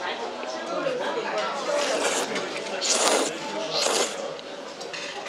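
A young woman slurps noodles loudly up close.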